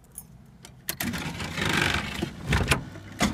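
A car's starter motor cranks.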